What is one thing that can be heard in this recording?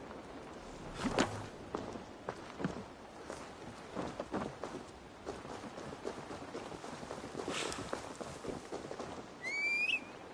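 Footsteps crunch over dirt and rustle through tall grass.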